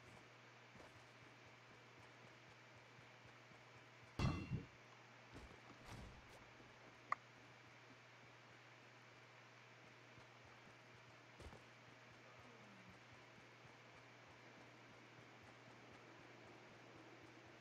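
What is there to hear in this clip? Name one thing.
Footsteps patter quickly over grass and wooden boards.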